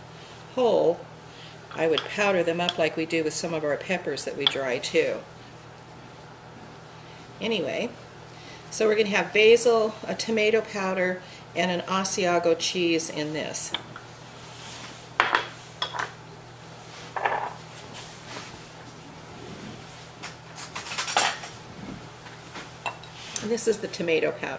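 An elderly woman talks calmly and clearly close to a microphone.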